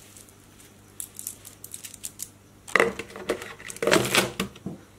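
Hands rustle and press material into a plastic bucket.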